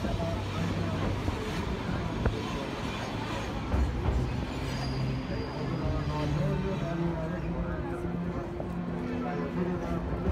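A train rumbles and clatters along a bridge.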